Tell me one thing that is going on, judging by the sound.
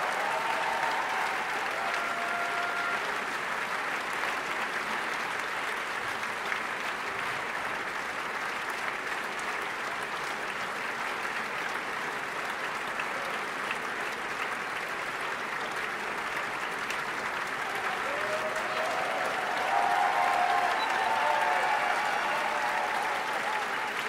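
Voices in the crowd cheer and call out.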